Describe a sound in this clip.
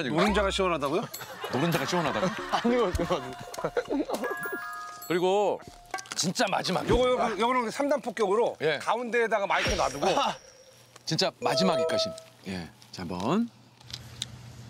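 Men talk with animation, close by.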